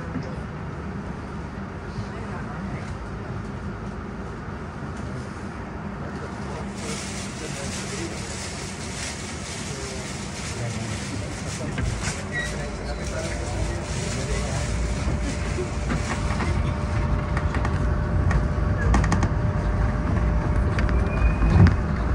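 A bus engine rumbles steadily, then grows louder as the bus pulls away and speeds up.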